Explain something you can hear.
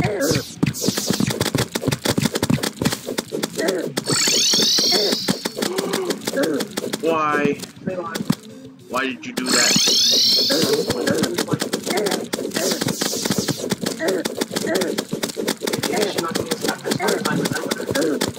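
Rapid game weapon shots fire over and over.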